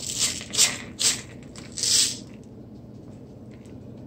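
Salt crystals pour into a lid.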